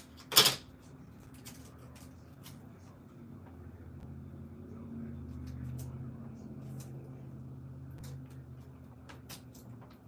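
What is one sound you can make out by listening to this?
Plastic packaging rustles and clicks as hands arrange items in a basket.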